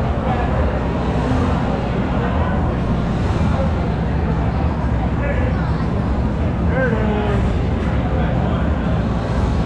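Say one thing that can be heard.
People chatter in the background.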